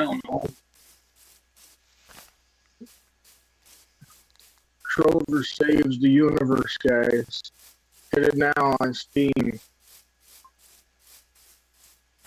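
Footsteps crunch softly on grass at a steady walking pace.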